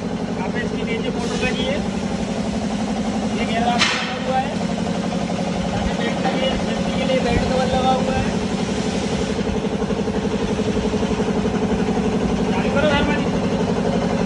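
A man speaks briefly nearby over the machine noise.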